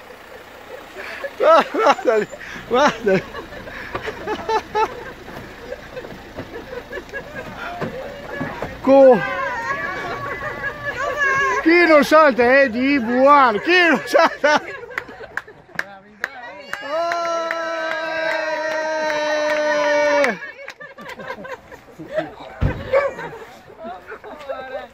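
Men shout and cheer excitedly nearby, outdoors.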